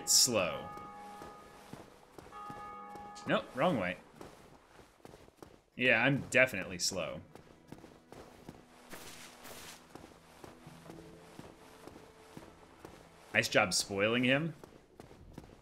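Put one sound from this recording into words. A young man talks into a microphone in short bursts, close up.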